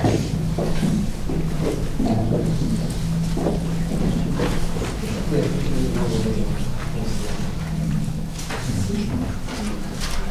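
A man speaks calmly and steadily through a microphone.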